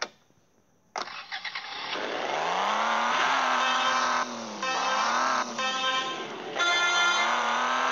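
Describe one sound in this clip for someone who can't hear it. A car engine starts, revs up and drones with shifting pitch.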